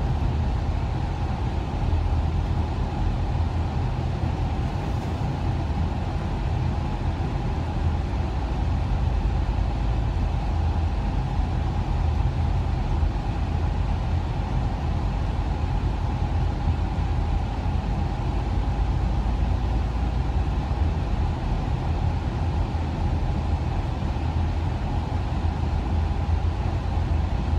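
Tyres roar steadily on the road inside a moving car.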